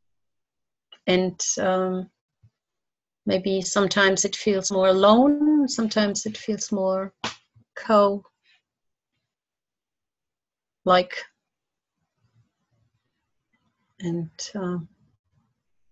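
A middle-aged woman talks calmly over an online call, in short bursts with pauses.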